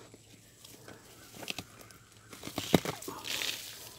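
Leaves rustle as a hand brushes through plants.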